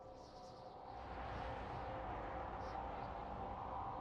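A spacecraft's engines roar steadily.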